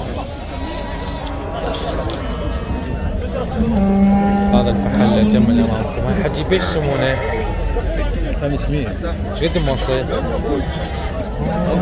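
A crowd of men and women talk over each other outdoors.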